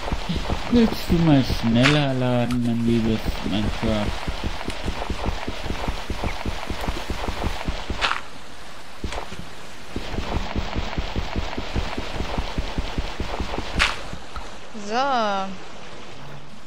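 Blocks of earth are dug with quick, repeated crunching thuds.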